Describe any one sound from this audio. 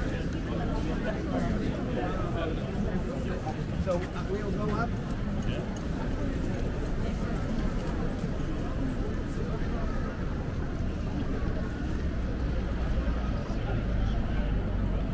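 A crowd of people murmurs and chatters all around outdoors.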